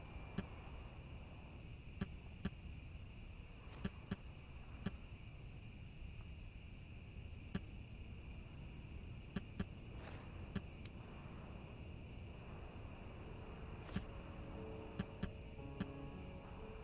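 Short, sharp interface clicks sound at uneven intervals.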